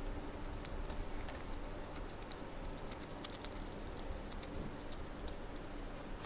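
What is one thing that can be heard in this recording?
A chipmunk nibbles and gnaws on food with tiny clicks.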